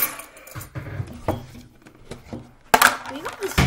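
Hands twist and rattle a metal can.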